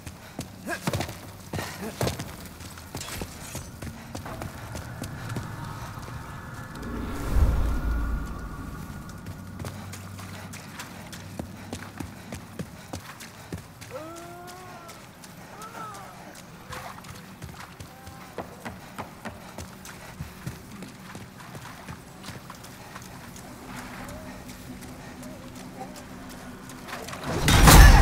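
Footsteps tap on rocky ground.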